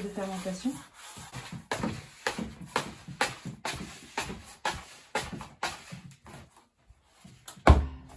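A plastic scraper scrapes and taps against a plastic tub.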